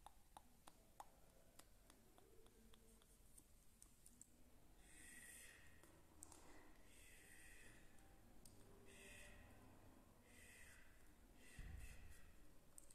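A young woman whispers softly, very close to the microphone.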